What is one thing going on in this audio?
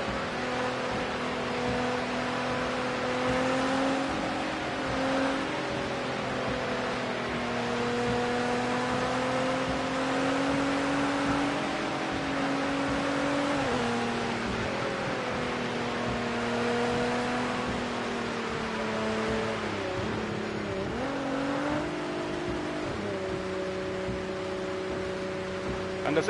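A racing car engine hums steadily, rising and falling in pitch with the throttle.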